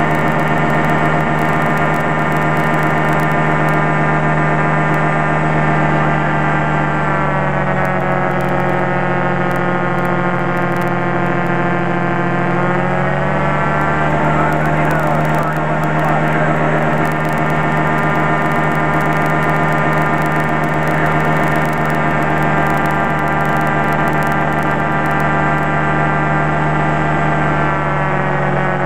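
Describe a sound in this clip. A small propeller plane's engine drones loudly and steadily, dipping lower in pitch for a while before rising again.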